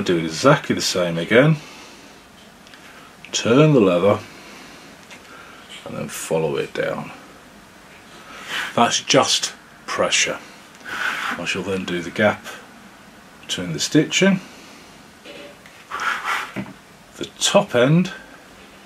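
A metal tool scrapes lightly along leather.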